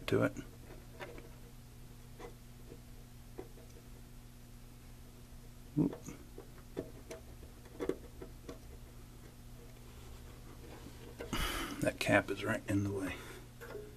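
A probe tip taps and clicks against a circuit board.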